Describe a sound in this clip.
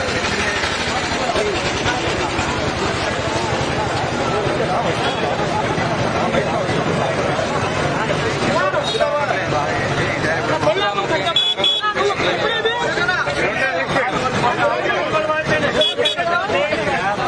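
A crowd of men and women talks at once close by, outdoors.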